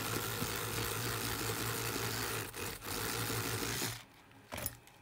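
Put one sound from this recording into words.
An electric toothbrush buzzes and scrubs steadily.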